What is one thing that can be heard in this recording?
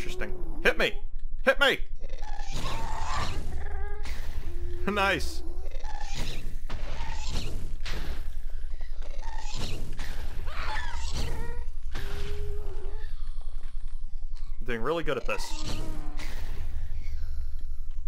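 A large creature wails and cries out.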